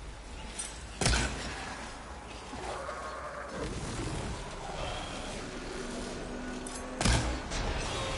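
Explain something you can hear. A bow string snaps as an arrow is loosed.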